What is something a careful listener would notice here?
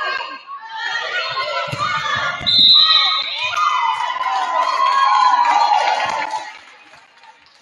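Young female players shout and cheer loudly in an echoing gym.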